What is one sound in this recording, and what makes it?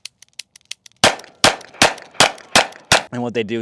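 A revolver fires loud shots in quick succession, ringing out in the open air.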